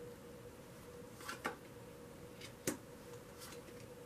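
A card slides softly onto a cloth-covered table.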